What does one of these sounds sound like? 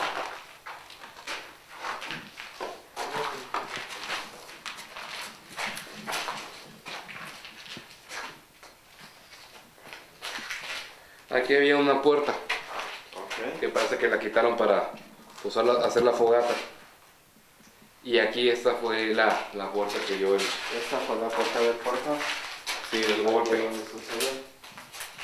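A man talks in a low voice close by.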